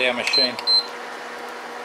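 A control panel beeps twice as a button is pressed.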